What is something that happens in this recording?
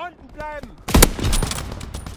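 A rifle fires a single sharp, loud shot.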